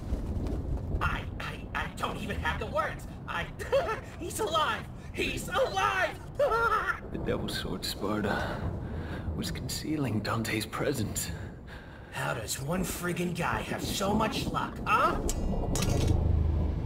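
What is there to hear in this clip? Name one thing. A man speaks with emotion, close by.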